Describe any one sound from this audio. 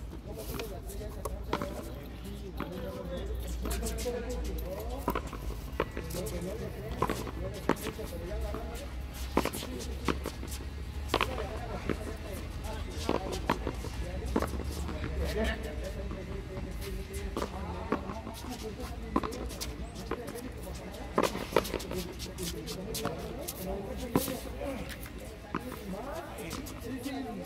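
A ball smacks sharply against a wall again and again, echoing.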